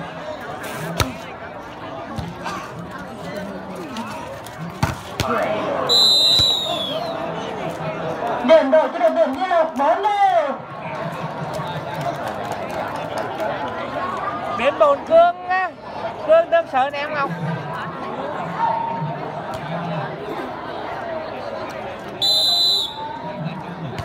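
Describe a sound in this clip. A large crowd of spectators cheers and chatters outdoors.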